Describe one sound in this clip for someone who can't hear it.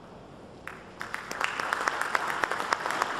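A large audience applauds loudly.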